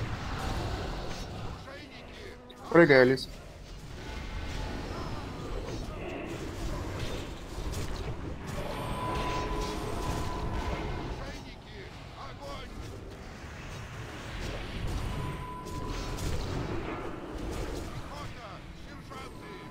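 Spells crackle and explode in a game battle.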